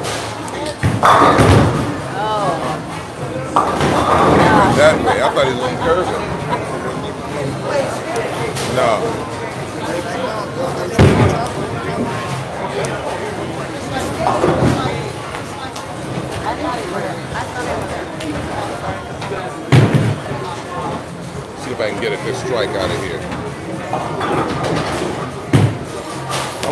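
Bowling pins crash and clatter loudly in an echoing hall.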